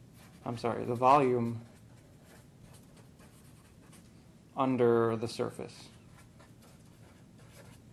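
A marker squeaks and scratches across a board.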